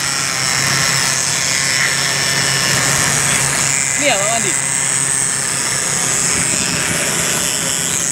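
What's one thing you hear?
A concrete vibrator buzzes as it is pushed into the ground.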